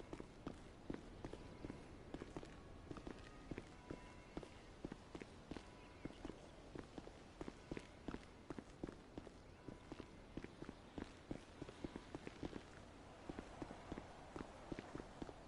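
Footsteps tap quickly on hard stairs and pavement.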